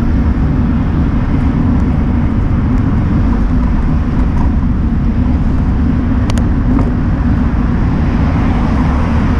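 Traffic passes by on a busy road.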